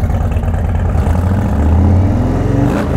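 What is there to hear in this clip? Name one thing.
A motorcycle engine revs briefly.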